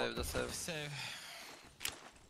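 A man speaks into a close microphone.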